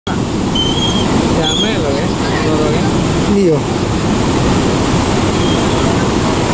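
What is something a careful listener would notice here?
River water rushes and splashes steadily.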